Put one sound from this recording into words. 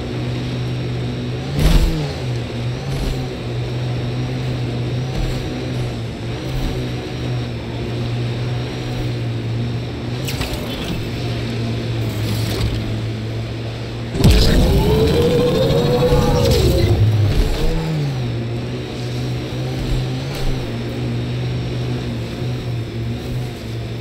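A vehicle engine hums steadily as it drives over snow.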